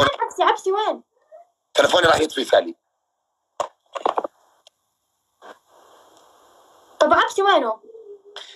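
A young man talks with animation through a phone's microphone.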